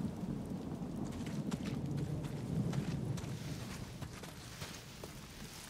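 Footsteps crunch softly through dry grass and brush.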